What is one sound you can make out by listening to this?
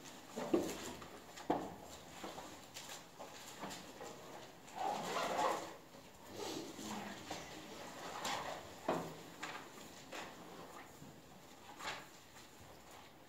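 A young woman speaks quietly through a microphone.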